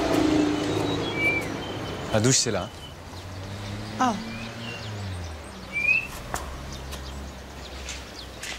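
Footsteps scuff on a dirt path.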